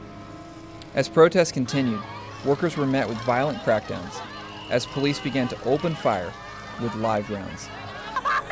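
A crowd of men and women shout and clamour close by.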